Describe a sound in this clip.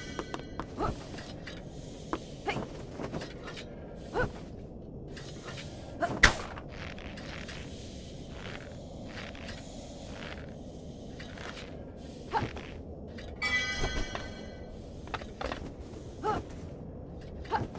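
Short footsteps and light thuds tap now and then.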